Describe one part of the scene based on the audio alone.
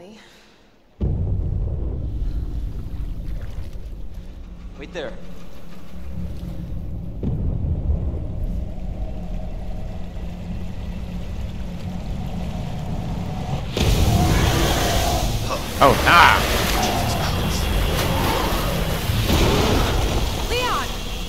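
Water churns and rumbles low and steady.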